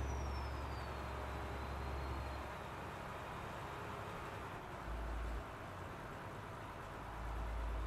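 Tyres roll on a road with a steady rushing noise.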